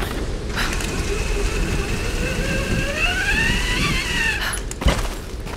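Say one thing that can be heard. A metal hook whines as it slides fast down a rope.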